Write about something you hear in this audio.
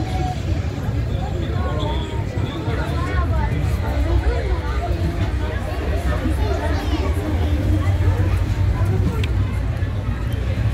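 A ride rumbles steadily with a low roar.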